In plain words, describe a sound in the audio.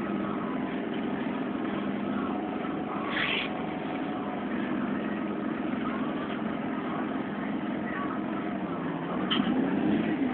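Rain patters on a bus window.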